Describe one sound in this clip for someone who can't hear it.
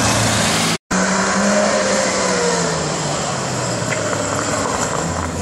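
Another car engine revs and then eases off as the car passes close by.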